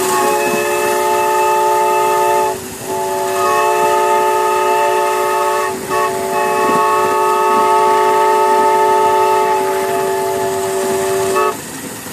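Steam hisses from a small locomotive.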